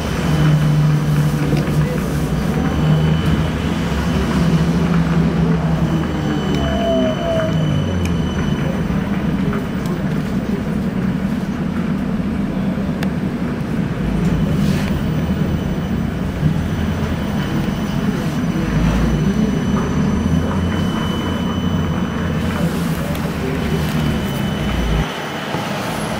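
An engine hums steadily from inside a moving vehicle.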